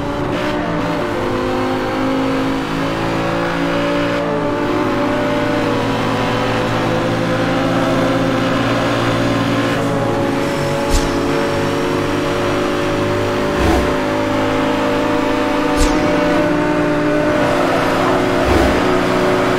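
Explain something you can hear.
A car engine roars at high revs, shifting gears as it speeds up.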